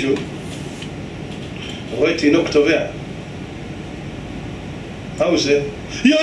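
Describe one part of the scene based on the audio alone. An adult man speaks calmly into a microphone, in short phrases with pauses.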